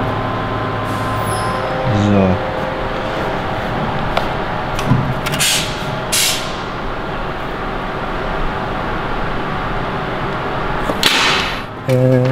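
Sheet metal clanks and scrapes as it is bent.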